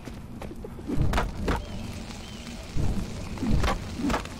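Flames burst up with a loud whoosh.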